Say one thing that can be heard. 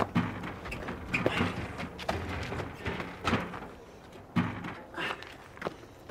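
Wood knocks and scrapes as a man lifts a heavy door.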